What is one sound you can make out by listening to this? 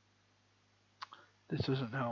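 A computer mouse clicks once.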